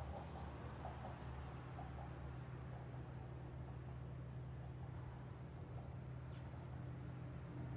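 A paintbrush brushes softly.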